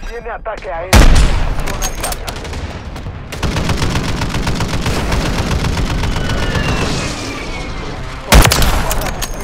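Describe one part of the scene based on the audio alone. A rifle fires loud, booming shots.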